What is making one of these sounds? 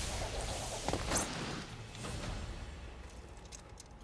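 Steel blades swish and clang.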